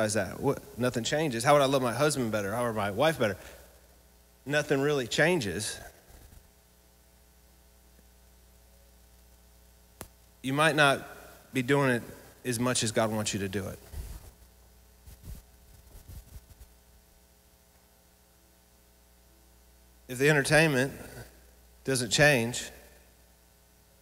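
A man speaks with animation into a microphone through a loudspeaker, with long pauses.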